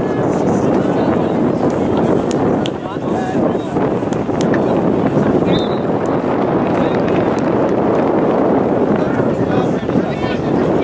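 A crowd of spectators chatters and calls out nearby outdoors.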